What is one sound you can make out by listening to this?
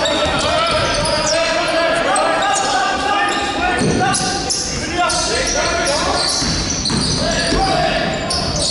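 Young players shout and call out to each other across the court.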